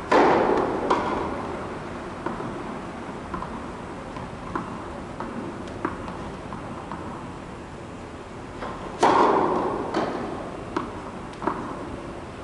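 A tennis ball bounces on the court.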